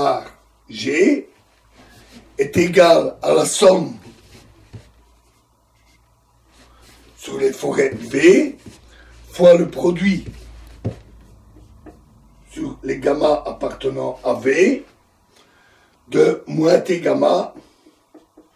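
A middle-aged man talks calmly and close by, explaining in bursts with pauses.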